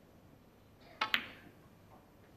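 A cue sharply clicks against a snooker ball.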